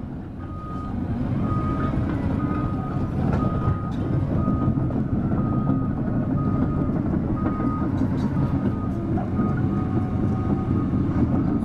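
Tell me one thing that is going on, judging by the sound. An excavator engine runs nearby.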